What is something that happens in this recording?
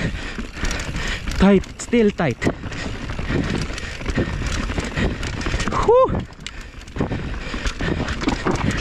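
A bike frame and chain rattle over bumps.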